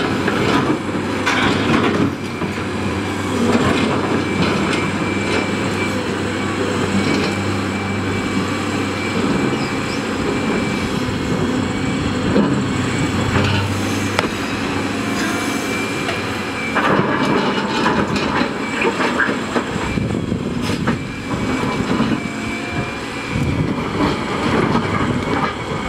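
Rocks scrape and clatter against an excavator bucket.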